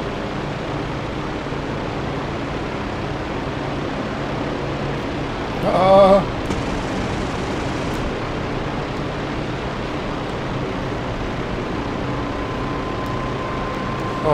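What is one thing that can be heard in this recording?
Wind rushes loudly.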